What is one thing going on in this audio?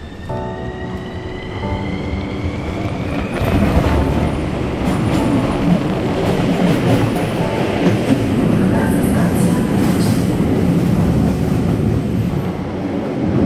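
A subway train rushes past with a loud rumble.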